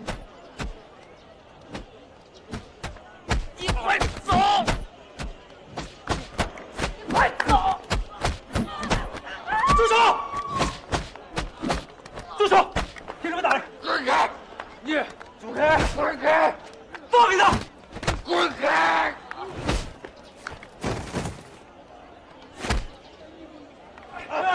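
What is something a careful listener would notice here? Blows and bodies thud on the ground.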